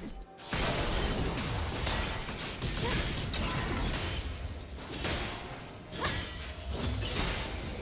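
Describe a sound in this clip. Game spells burst and crackle in a fast, busy fight.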